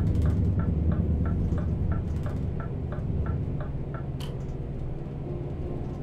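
A heavy truck's diesel engine drones while cruising at speed.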